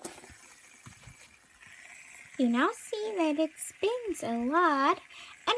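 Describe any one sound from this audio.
A fidget spinner whirs softly as it spins.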